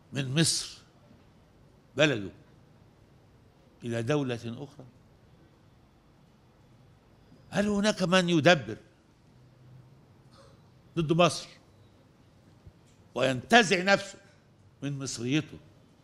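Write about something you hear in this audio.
An elderly man speaks slowly and formally into a microphone, pausing between phrases.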